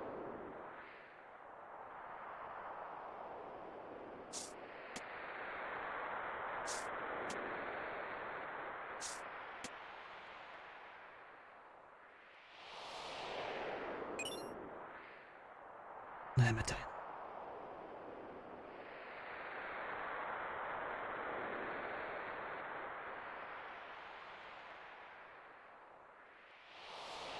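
Soft, airy game music swells and fades in slow waves.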